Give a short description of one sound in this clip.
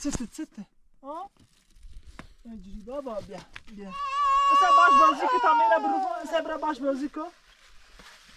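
Young children chatter and call out close by.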